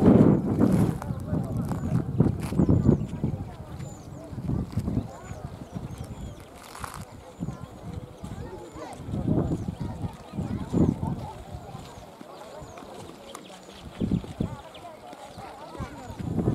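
Wind gusts blow outdoors, rumbling in bursts.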